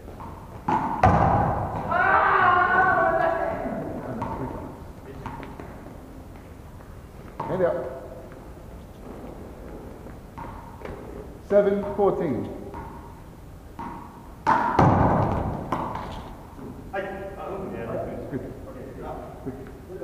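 A ball thuds as it is thrown and caught.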